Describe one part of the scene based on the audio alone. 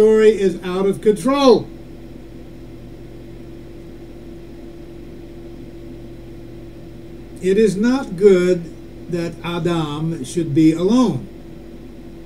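A middle-aged man speaks calmly close to a microphone, pausing between phrases.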